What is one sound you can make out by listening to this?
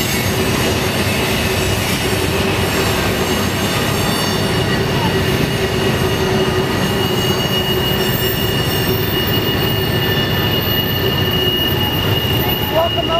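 A freight train rumbles steadily past on the rails.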